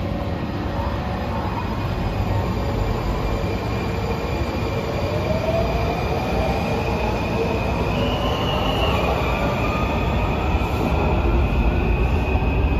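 A subway train rumbles loudly through a large echoing station.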